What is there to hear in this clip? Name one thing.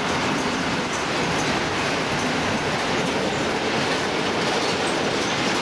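A freight train rumbles past with a loud, steady roar.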